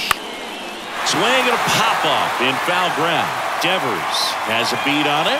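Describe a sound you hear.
A crowd cheers loudly in a large stadium.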